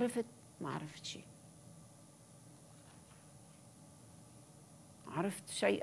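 An elderly woman speaks calmly into a microphone, with long pauses.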